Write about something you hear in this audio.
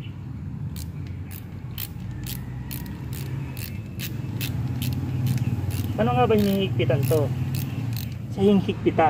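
A hand tool clicks sharply against metal in quick, even bursts.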